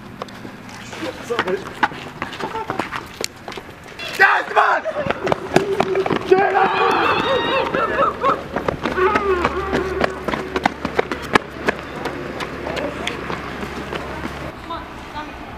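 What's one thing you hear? Young men shout and cheer outdoors, close by.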